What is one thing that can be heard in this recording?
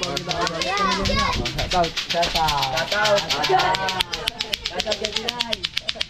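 Children laugh and call out loudly close by.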